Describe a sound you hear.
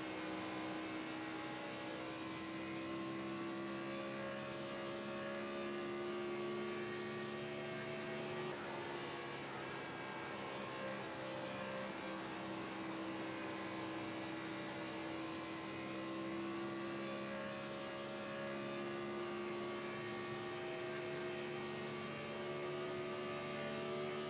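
A race car engine roars steadily at high speed, its pitch rising and falling slightly.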